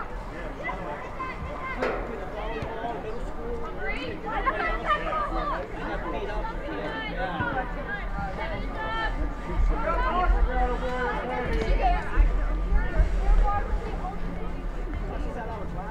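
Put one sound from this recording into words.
Young female players shout and call out to each other across an open field.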